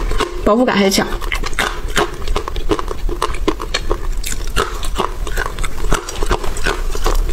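A young woman crunches hard snacks loudly and close up.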